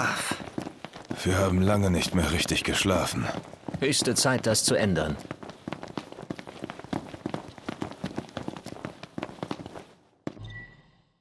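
Several people run with quick footsteps on pavement.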